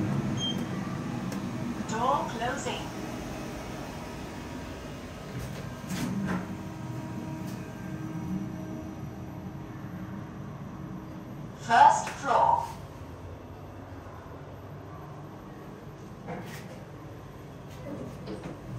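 An elevator hums low and steady as it moves.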